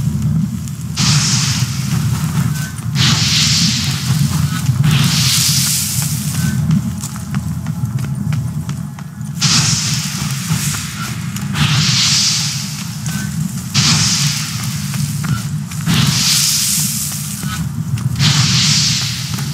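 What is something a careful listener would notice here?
Flames burst out again and again with loud rushing whooshes.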